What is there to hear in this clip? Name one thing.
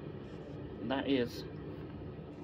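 A small button clicks as a finger presses it.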